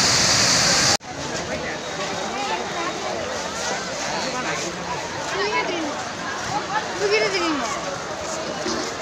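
A large crowd of men and women chatters all around.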